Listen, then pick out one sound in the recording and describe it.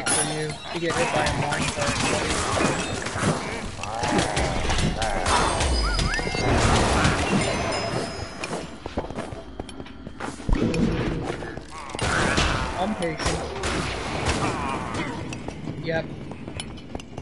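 Game combat sounds clash and thud as weapons strike enemies.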